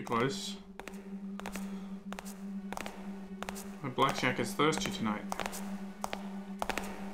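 Footsteps tap at an even pace on a hard floor.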